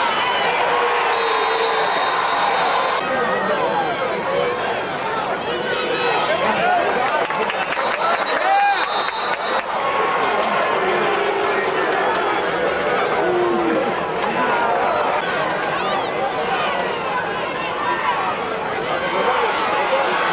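A crowd of spectators cheers and chatters outdoors throughout.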